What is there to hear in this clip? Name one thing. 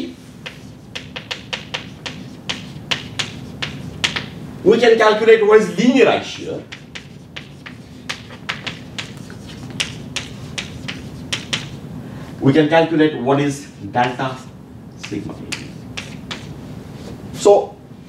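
Chalk taps and scratches quickly on a blackboard.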